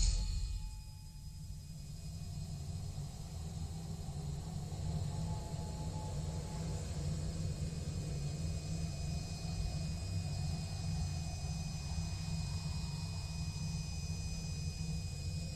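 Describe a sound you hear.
A gentle wind blows softly outdoors.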